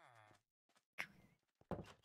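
A wooden door clicks open.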